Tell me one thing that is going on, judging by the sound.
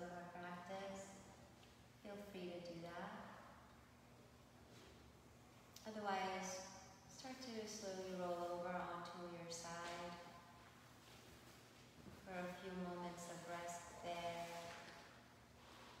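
A woman speaks calmly and softly, guiding slowly with long pauses, in a quiet echoing room.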